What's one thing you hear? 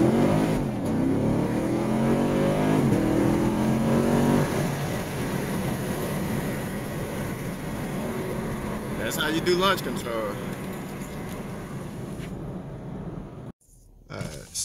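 A car engine roars loudly as the car speeds up, then settles to a steady drone.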